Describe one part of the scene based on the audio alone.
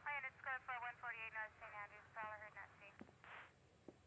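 A handheld radio scanner gives off rapid chirping tones.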